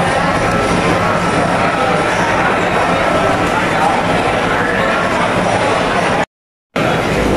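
A crowd chatters in a busy, echoing hall.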